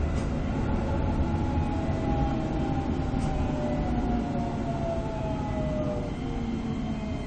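A train rumbles along the tracks from inside the cab.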